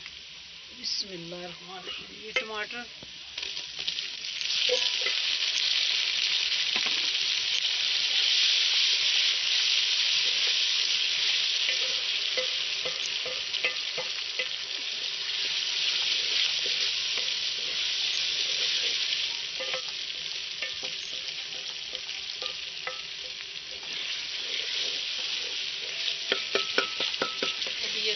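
A wood fire crackles.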